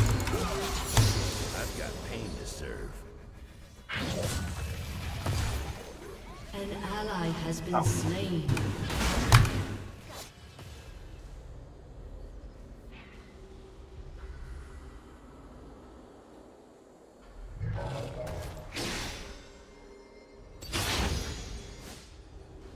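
Video game spell effects whoosh and clash.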